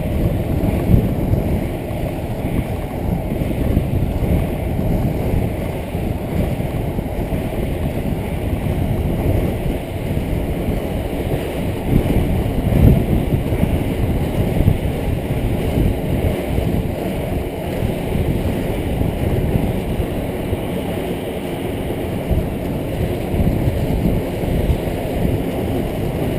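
Wind rushes and buffets in a steady low roar.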